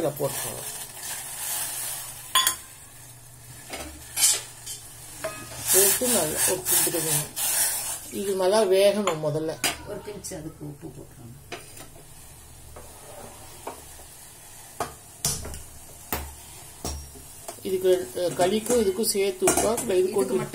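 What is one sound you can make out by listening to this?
Water boils in a steel pot.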